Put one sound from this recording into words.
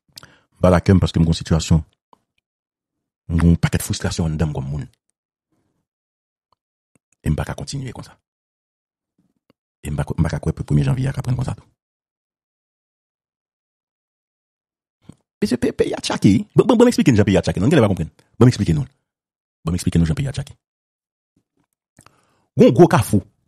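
A man speaks calmly over a phone line, in short bursts with pauses.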